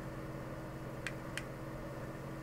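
Small plastic parts click in a man's hands.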